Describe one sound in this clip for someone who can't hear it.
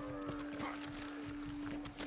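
A creature runs and its footsteps thud on the ground.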